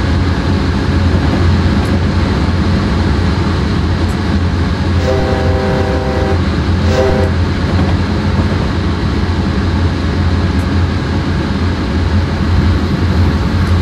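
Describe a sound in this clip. A diesel locomotive engine rumbles steadily.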